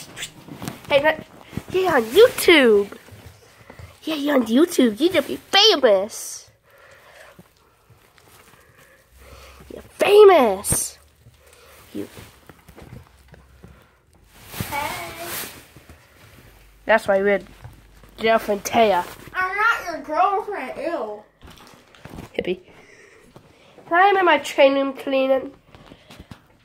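A small dog howls and whines close by.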